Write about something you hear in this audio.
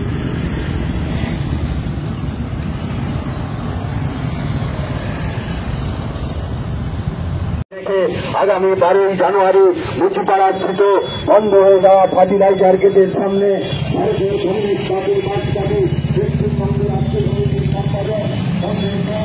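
Many motorcycle engines rumble and putter close by.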